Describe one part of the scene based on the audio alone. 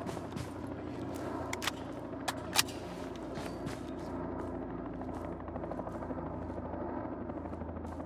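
Boots thud on a concrete floor and climb concrete stairs.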